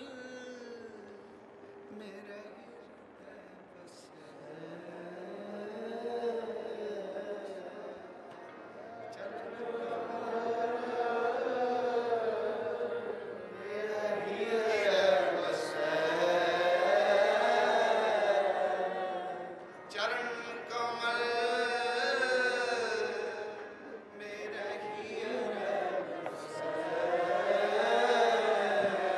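A group of men sing along in chorus.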